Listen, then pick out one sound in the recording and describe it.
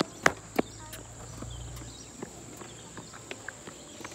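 Sneakers patter quickly as a boy runs off.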